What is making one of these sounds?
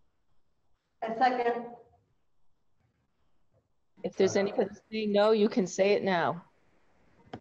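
A middle-aged woman speaks over an online call.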